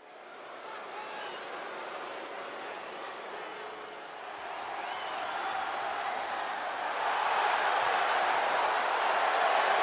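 A large crowd cheers and roars in an echoing arena, growing steadily louder.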